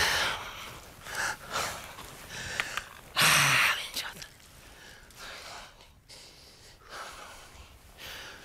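Loose stones crunch and slide under a man's boots and knees.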